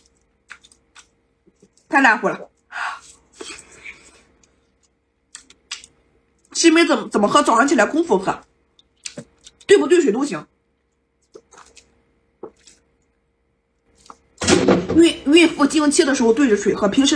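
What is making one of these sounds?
A young woman chews food with wet, smacking sounds.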